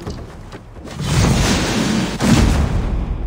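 A shield takes heavy thudding blows.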